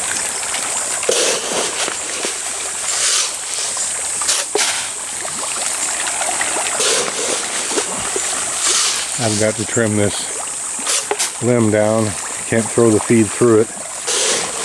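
Fish splash in the water again and again.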